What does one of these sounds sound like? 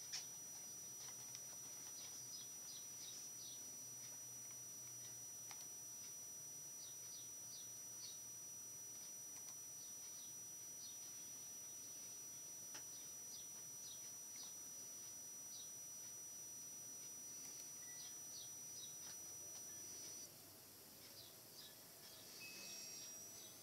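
A computer mouse clicks now and then.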